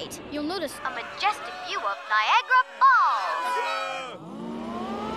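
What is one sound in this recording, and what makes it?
Cartoon voices scream in panic.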